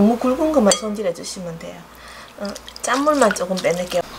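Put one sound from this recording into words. Hands squish and swish seaweed in a bowl of water.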